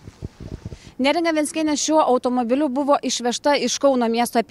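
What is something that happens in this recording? A young woman speaks calmly and clearly into a microphone, close by.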